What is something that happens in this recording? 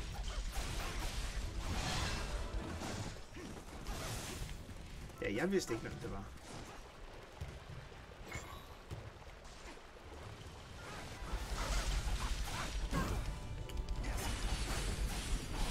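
Swords slash and clash amid loud battle noise.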